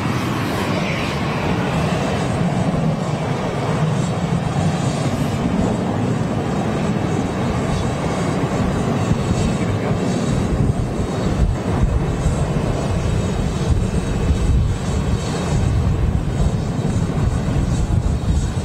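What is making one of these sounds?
A jet engine hums loudly as an airliner taxis close by.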